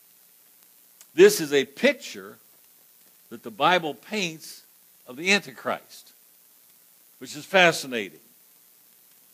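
An elderly man preaches through a microphone in short, emphatic phrases with pauses between them.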